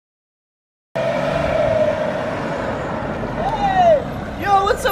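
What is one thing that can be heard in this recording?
A car engine hums as a car approaches.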